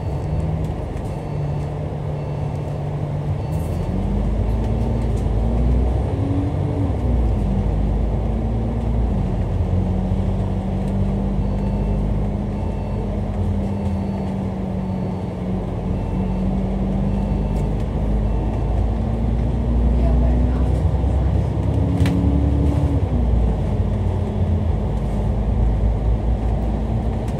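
Traffic rumbles past on a busy road.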